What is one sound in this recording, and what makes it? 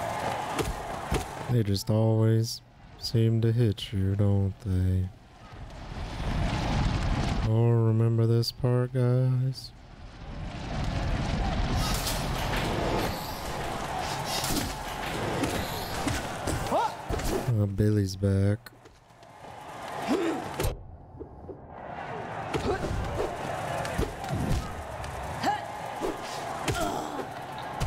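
A man talks through a microphone with animation.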